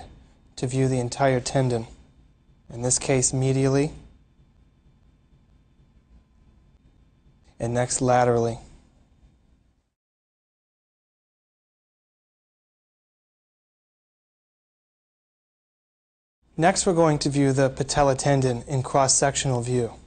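A man speaks calmly and clearly, explaining as if to an audience.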